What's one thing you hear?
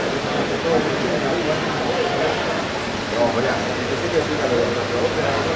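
A crowd of men and women chatters loudly in a large echoing hall.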